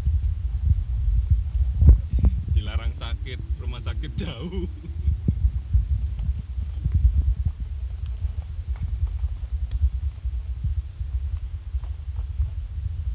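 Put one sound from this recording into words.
A car rumbles over a rough gravel road, heard from inside.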